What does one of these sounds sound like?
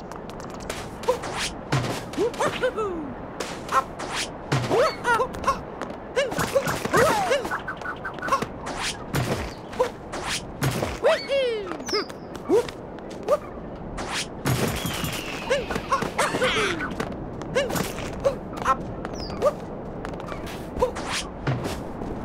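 A cartoon character makes short bouncy jump and landing effects again and again.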